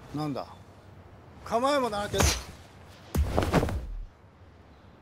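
A young man shouts forcefully, close by.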